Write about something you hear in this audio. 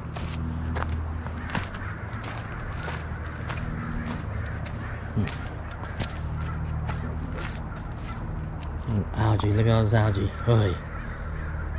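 Water laps gently against stones at a river's edge.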